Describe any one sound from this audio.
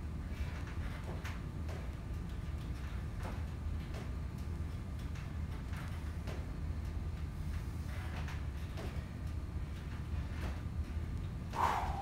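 A man steps up and down onto a wooden box.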